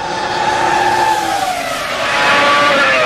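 A racing car engine roars past at high speed, its pitch falling.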